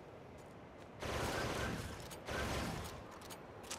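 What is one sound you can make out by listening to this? A flying machine fires with loud bursts.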